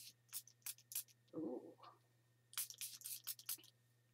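A cloth dabs and rubs against paper.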